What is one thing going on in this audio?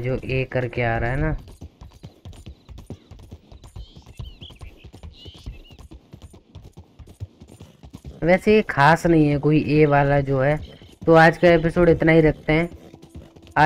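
A horse's hooves clop steadily on gravel.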